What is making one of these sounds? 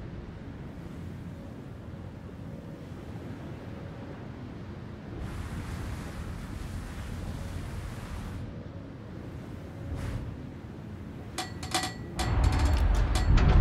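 Water rushes along a ship's hull.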